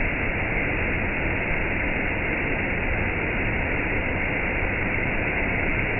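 A waterfall rushes and splashes steadily over rocks close by.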